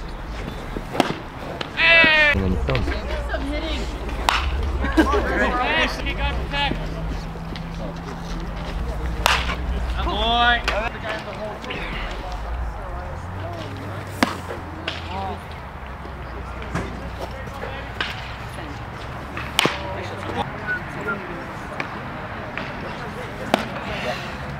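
A baseball smacks into a catcher's mitt with a sharp pop, over and over.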